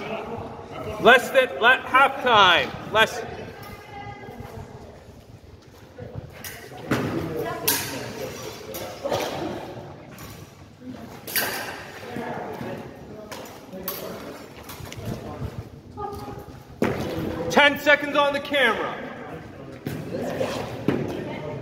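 Swords clack together in quick exchanges.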